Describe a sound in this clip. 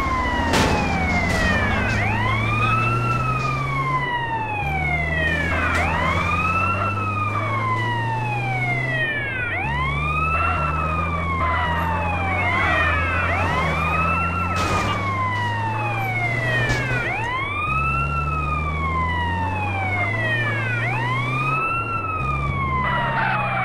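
A vehicle engine hums steadily while driving.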